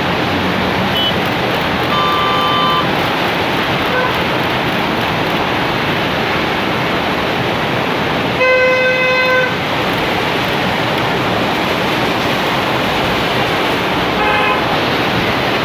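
Car horns honk now and then.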